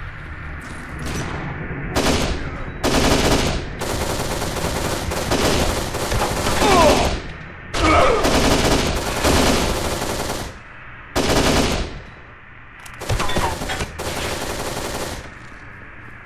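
Bursts of rifle fire crack loudly, echoing in an enclosed space.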